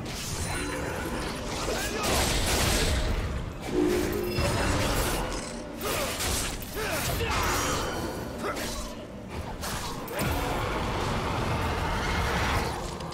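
Magic spell effects whoosh and crackle in bursts.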